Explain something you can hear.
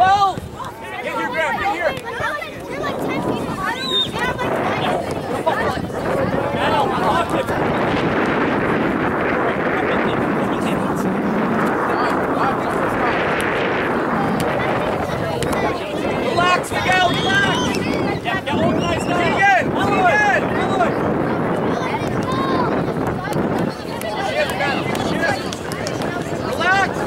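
Children shout to each other while playing.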